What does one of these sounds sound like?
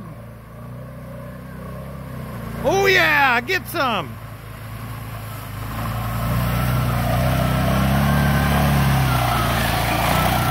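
An off-road quad bike engine rumbles and revs as it climbs closer.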